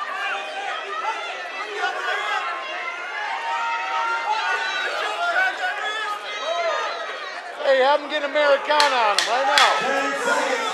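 A crowd of men and women shouts and cheers loudly.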